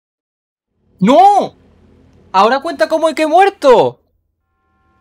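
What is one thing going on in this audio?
A young man exclaims loudly and excitedly into a close microphone.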